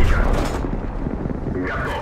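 An explosion booms and fades.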